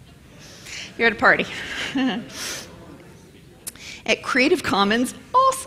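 A woman speaks into a microphone in a hall, with an amplified, slightly echoing voice.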